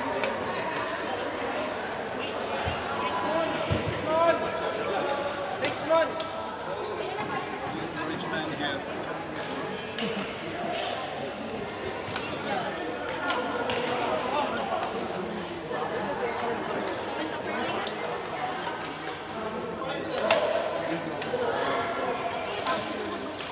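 Many adults talk and call out in a large echoing hall.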